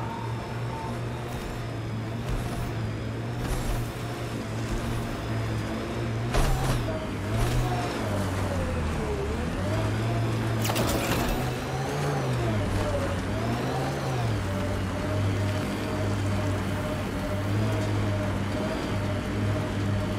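A vehicle engine hums steadily, its pitch rising and falling as it drives over rough ground.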